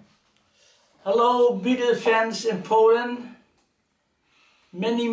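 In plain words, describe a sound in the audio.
A man speaks close by, clearly and calmly.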